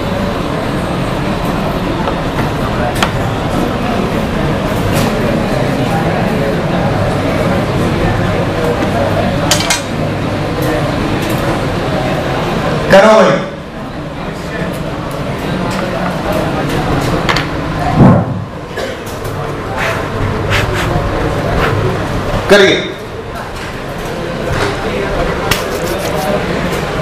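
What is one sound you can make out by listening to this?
A man lectures steadily, his voice close and echoing slightly in a room.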